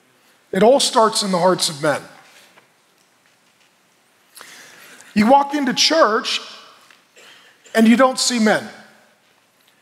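A man speaks emphatically into a headset microphone, in short bursts with pauses.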